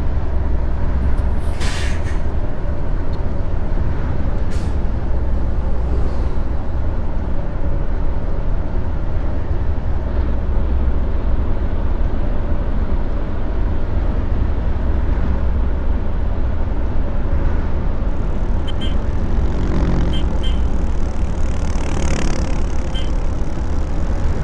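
A bus engine hums steadily as it drives along.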